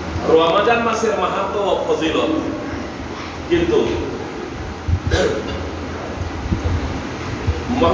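A middle-aged man speaks calmly into a clip-on microphone, close by.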